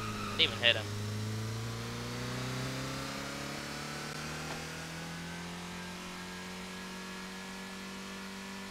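A car engine hums steadily and rises slowly in pitch as the car speeds up.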